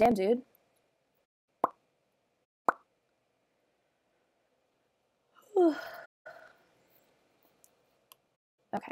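A young woman speaks briefly and casually into a microphone, close by.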